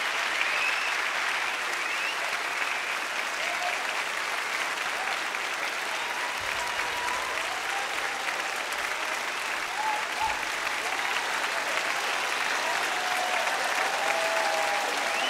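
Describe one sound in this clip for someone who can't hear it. Members of a crowd whistle and cheer.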